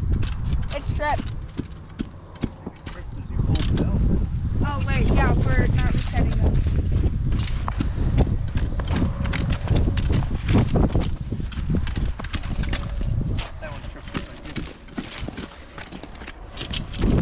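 Footsteps crunch on snow and ice.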